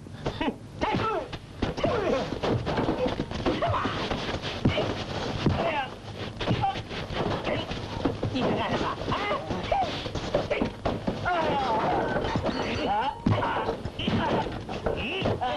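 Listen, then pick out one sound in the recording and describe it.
A man grunts and shouts during a scuffle.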